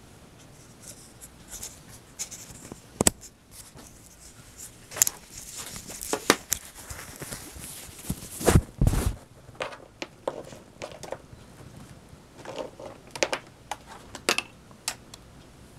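A phone rubs and bumps against clothing close by.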